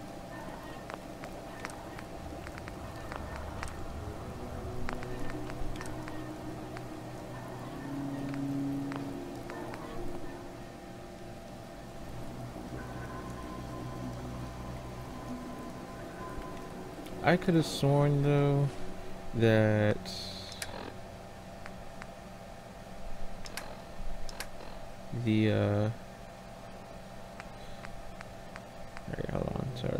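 Soft electronic menu clicks sound now and then.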